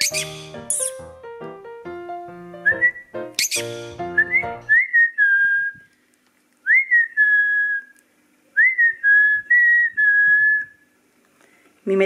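A parrot chirps and whistles up close.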